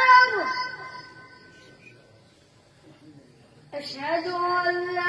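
A young boy chants in a melodic voice into a microphone, with a slight echo.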